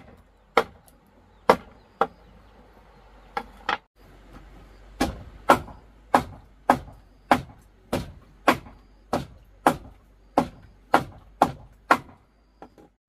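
A knife chops rapidly on a wooden board.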